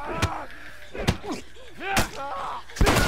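Heavy blows thud during a struggle.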